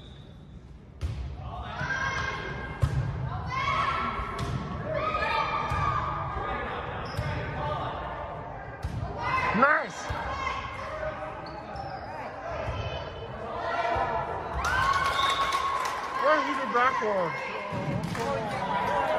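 A volleyball is struck with sharp thumps.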